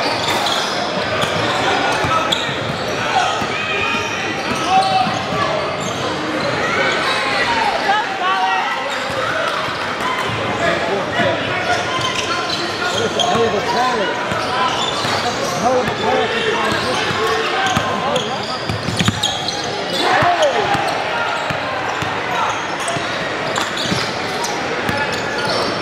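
A crowd murmurs and calls out in a large echoing gym.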